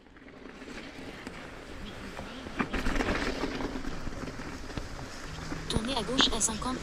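Bike tyres crunch and rumble over a rough frozen dirt track.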